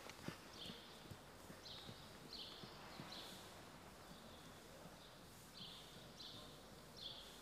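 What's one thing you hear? A horse's hooves thud softly and rhythmically on sand.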